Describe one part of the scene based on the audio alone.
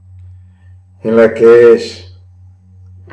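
A man calls out loudly in a long, drawn-out voice, close to a microphone.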